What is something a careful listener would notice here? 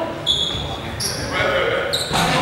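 Sneakers squeak sharply on a wooden court floor in a large echoing hall.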